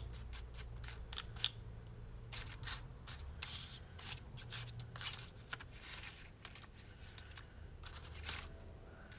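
Paper pieces rustle and shuffle as a hand sorts through them in a tray.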